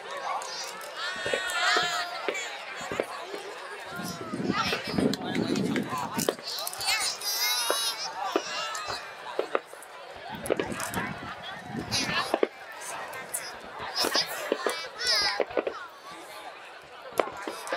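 Fireworks boom and pop at a distance, again and again.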